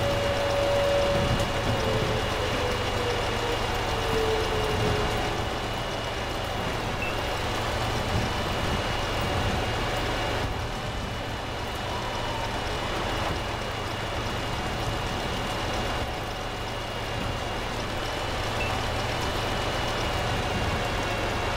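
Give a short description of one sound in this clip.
Tank tracks clank and grind over frozen ground.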